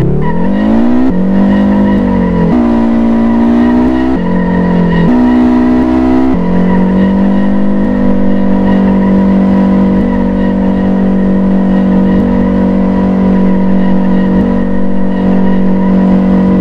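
Tyres screech on the tarmac.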